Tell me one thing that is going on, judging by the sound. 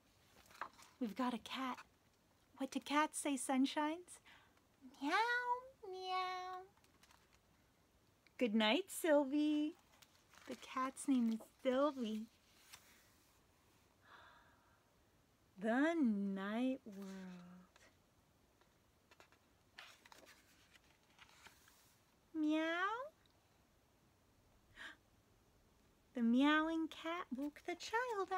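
A young woman reads aloud expressively, close to the microphone.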